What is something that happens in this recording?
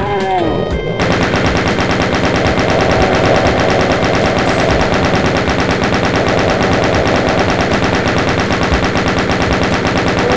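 A heavy machine gun fires a rapid, steady stream of shots.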